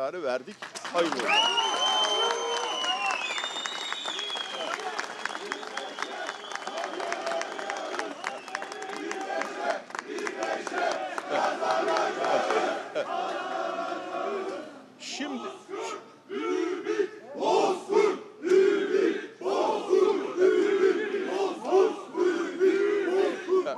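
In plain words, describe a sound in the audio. An elderly man speaks firmly into microphones outdoors.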